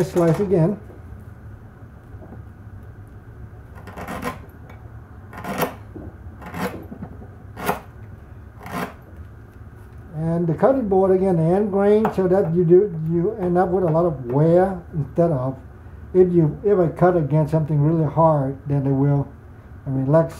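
A knife shaves and cuts into wood in short, crisp strokes.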